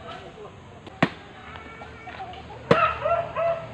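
A machete chops sharply into a coconut.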